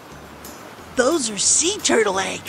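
A cartoon voice speaks happily.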